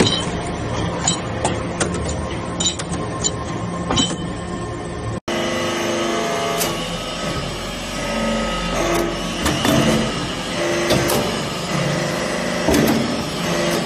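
Metal parts clank and knock sharply now and then.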